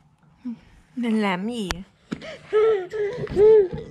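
A baby babbles and squeals happily close by.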